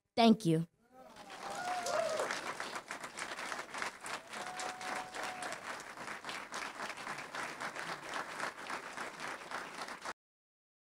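An audience applauds and cheers in a large room.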